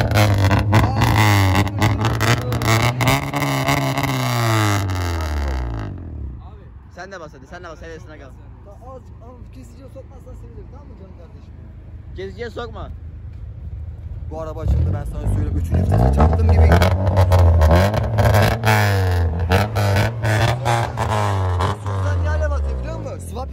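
A car exhaust crackles and pops sharply.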